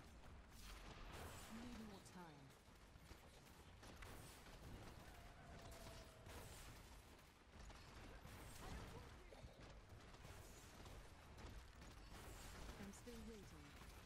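Spells crackle and explode in rapid bursts.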